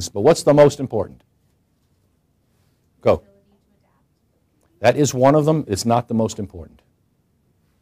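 A middle-aged man speaks calmly and clearly in short bursts, close to a microphone.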